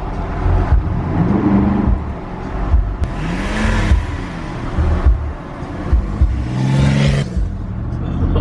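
A man talks inside the car.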